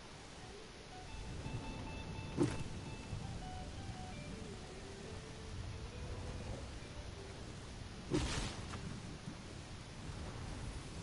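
Footsteps patter quickly across grass and dirt.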